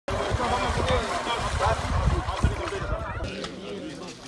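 People splash through shallow water while pushing a boat.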